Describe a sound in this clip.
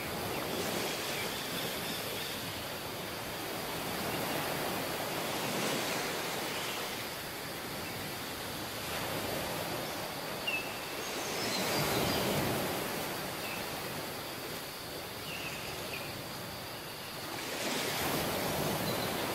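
Wind blows across the open beach.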